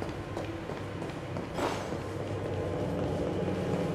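Light footsteps patter quickly across a hard floor.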